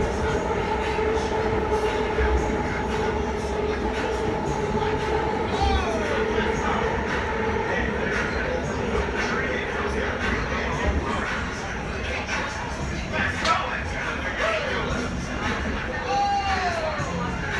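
An electric commuter train rumbles along the track, heard from inside the carriage.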